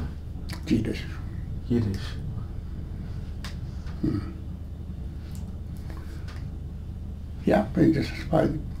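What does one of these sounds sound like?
An elderly man speaks calmly and slowly, close by, with long pauses.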